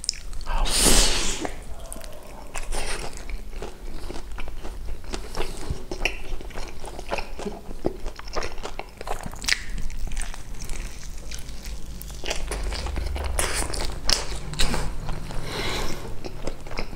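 A man bites into crispy fried chicken with loud crunches, close to a microphone.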